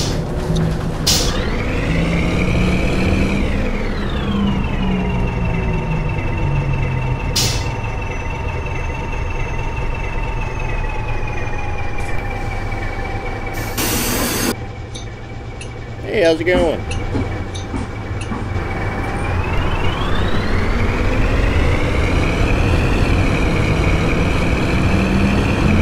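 A bus engine hums, winding down as the bus slows and revving up again as it pulls away.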